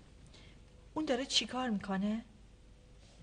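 A woman answers briefly in a calm voice.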